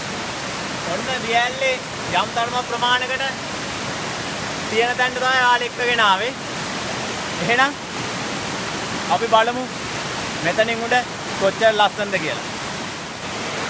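A young man talks with animation, close by.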